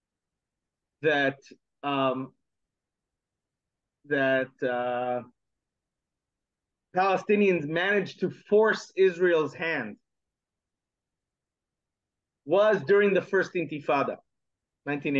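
A man speaks with animation over an online call, in short bursts with silent pauses between.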